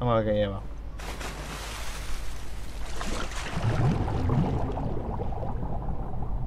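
Water splashes as someone wades and swims.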